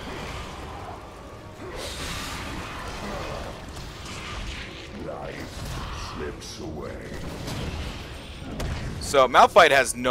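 Magic blasts and weapon strikes crackle and clash in a fast fight.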